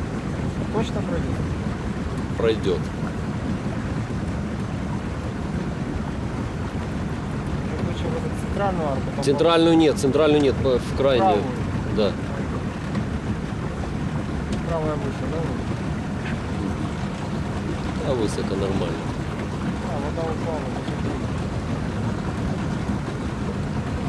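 Water laps softly against a moving boat.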